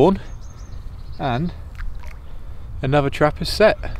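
Bait splashes into water.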